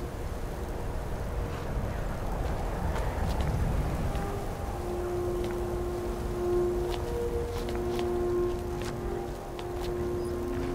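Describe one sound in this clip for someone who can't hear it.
A magic spell hums and crackles softly.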